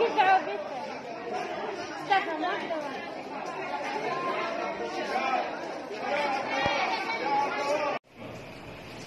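A crowd of women chatters loudly nearby in an echoing space.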